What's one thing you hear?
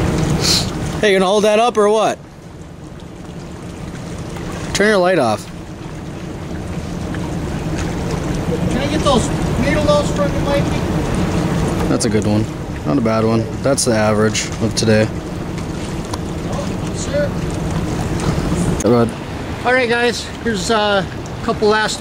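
A man talks with excitement close by.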